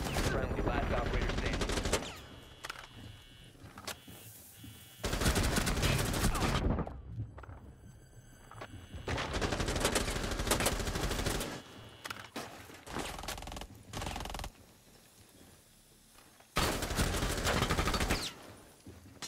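A rifle fires in rapid bursts of loud gunshots.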